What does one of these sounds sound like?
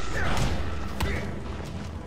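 A punch lands with a sharp thud.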